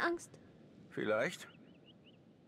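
A young man speaks with surprise up close.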